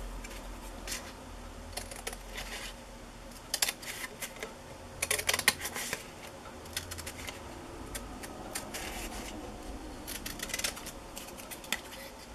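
Scissors snip through thin card in short crisp cuts.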